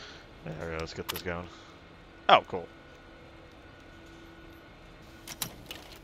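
A computer terminal beeps and clicks.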